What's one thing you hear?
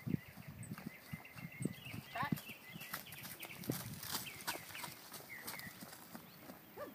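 A horse's hooves thud softly on dry dirt.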